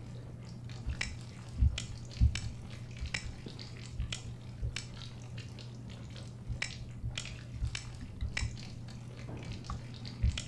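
A combination lock's dials click as they turn.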